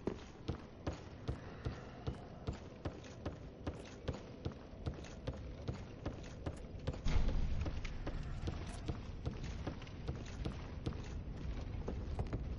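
Armoured footsteps thud quickly across wooden boards.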